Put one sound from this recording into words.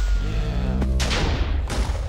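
A small explosion pops nearby.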